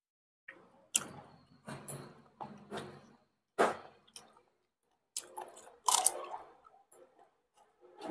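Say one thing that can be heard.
A woman crunches on fresh raw vegetables.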